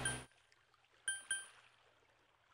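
Game menu blips chime softly.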